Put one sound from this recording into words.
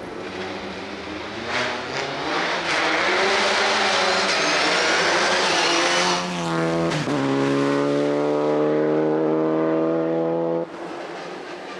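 A rally car's engine roars loudly as it accelerates hard past, then fades into the distance.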